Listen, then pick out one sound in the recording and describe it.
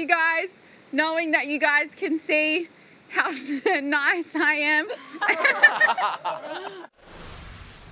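A young woman talks cheerfully and laughs, heard through a broadcast.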